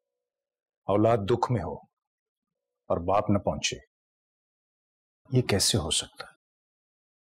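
A middle-aged man speaks calmly and seriously, close by, in short phrases.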